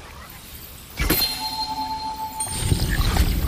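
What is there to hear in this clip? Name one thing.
A magical blast bursts with a sharp whoosh.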